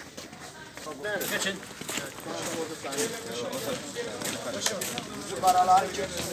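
A man speaks loudly and firmly outdoors.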